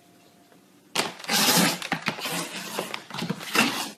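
Cats hiss and yowl as they fight.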